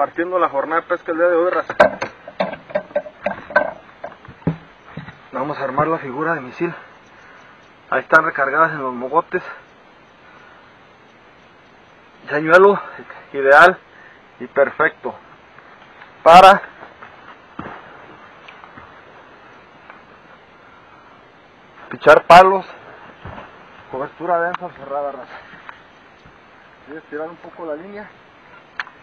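A man talks calmly and close by, in bursts with pauses.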